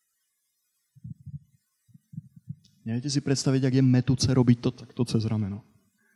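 A man speaks calmly into a handheld microphone.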